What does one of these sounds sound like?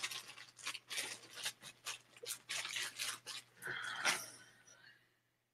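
A man puffs on a pipe with soft sucking sounds.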